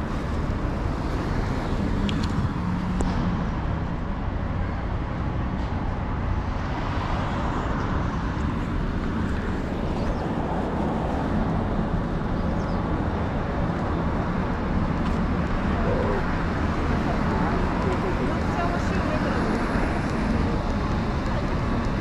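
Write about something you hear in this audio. Car traffic rumbles past on a nearby street.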